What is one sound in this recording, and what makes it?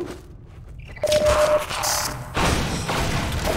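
A wooden crate smashes apart with a loud crack.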